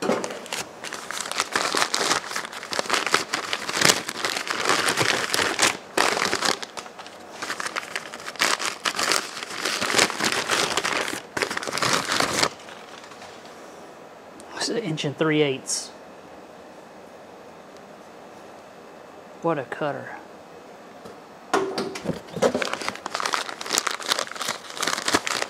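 Paper crinkles and rustles as it is unwrapped by hand.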